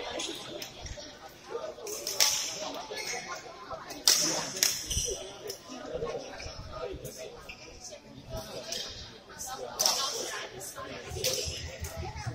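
Badminton rackets smack a shuttlecock in quick rallies.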